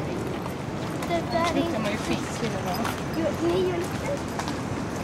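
Young people talk briefly as they walk past.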